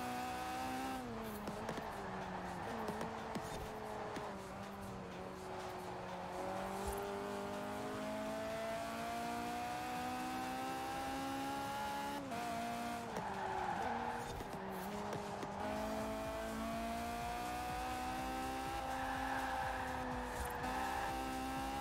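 Tyres squeal and hiss through fast bends.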